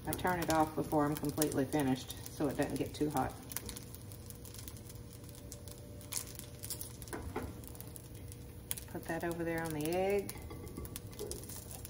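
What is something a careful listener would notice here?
A spatula scrapes in a pan.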